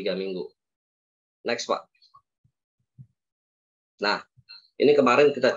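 A man speaks in short bursts, heard through an online call.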